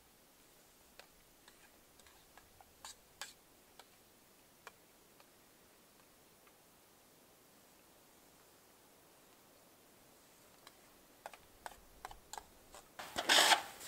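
A spoon clinks and scrapes against a metal pot.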